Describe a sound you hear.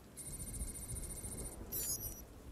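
An electronic device gives off a steady high warbling beep.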